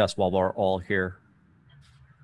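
A young man speaks briefly and calmly into a close microphone.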